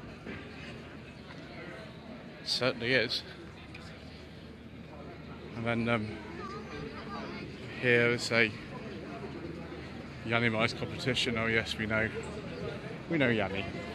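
A crowd murmurs in the background of a large echoing hall.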